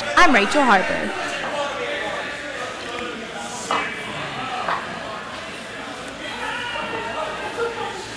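A crowd of people chatters and murmurs in a large echoing hall.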